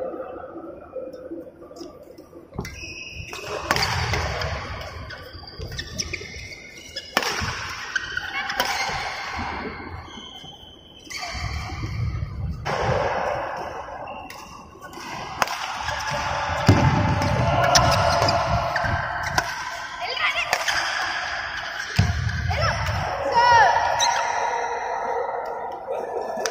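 Rackets smack a shuttlecock back and forth in an echoing hall.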